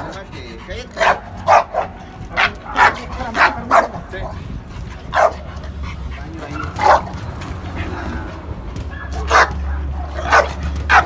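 A dog barks loudly in short, sharp bursts.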